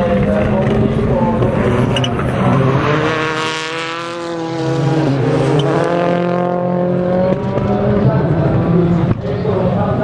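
A turbocharged four-cylinder rally car accelerates hard through a corner.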